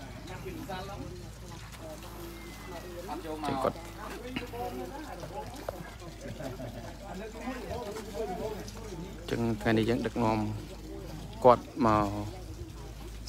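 A crowd of young people chatter nearby outdoors.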